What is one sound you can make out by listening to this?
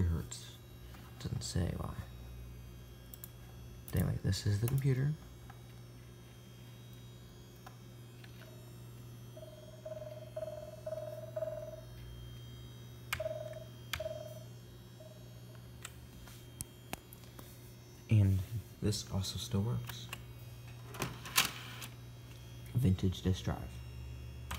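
A computer fan hums steadily.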